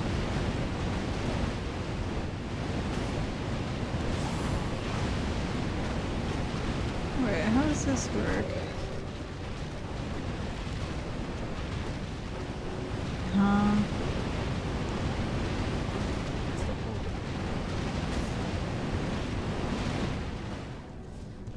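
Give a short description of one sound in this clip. Magic towers fire rapid bursts of crackling blasts.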